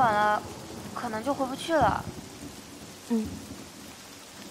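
A teenage girl speaks up close in short, lively phrases.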